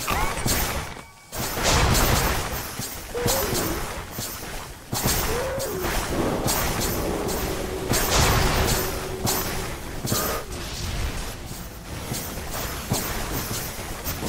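Game spell effects crackle and boom in a hectic battle.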